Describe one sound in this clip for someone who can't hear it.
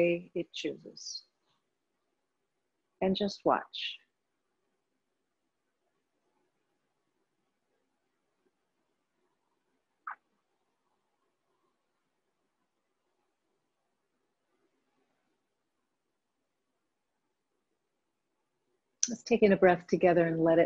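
A woman speaks calmly and slowly, close to a microphone, with long pauses.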